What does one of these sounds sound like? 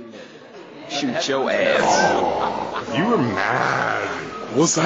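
A man shouts loudly and wildly close by.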